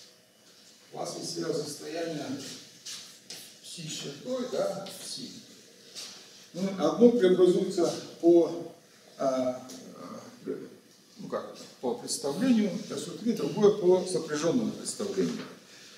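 An elderly man lectures calmly in a room with a slight echo.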